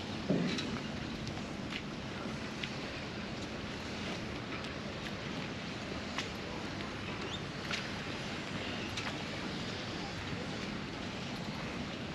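Rigging clinks lightly against the masts of moored sailboats.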